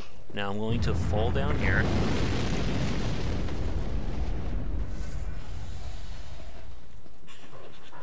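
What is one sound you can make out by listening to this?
Wind howls through a snowstorm.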